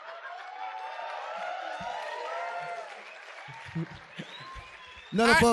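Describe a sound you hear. An audience laughs in a large room.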